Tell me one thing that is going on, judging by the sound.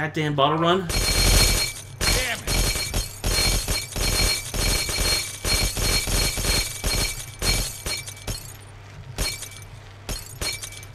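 Glass bottles smash and shatter rapidly, over and over.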